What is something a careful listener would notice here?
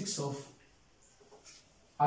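An eraser wipes a whiteboard.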